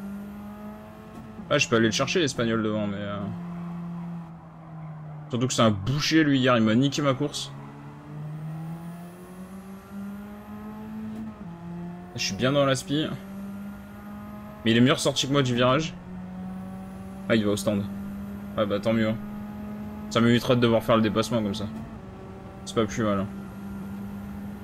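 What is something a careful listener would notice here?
A racing car engine drones steadily, shifting pitch as it changes gear.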